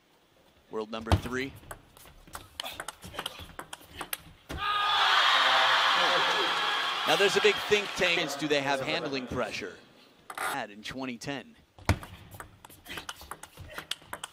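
A ball clicks back and forth on a table and paddles.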